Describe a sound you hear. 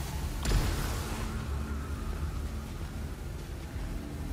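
Laser beams blast and crackle with a loud burst.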